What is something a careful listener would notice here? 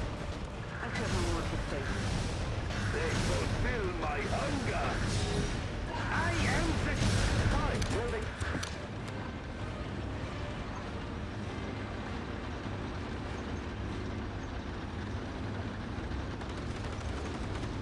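Tank guns fire and shells explode in a battle.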